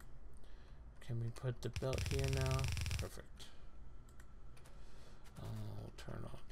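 A man speaks calmly into a headset microphone.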